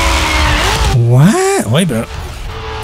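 A racing car crashes into a wall with a heavy thud.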